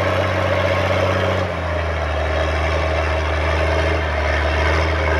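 A plough scrapes through the soil.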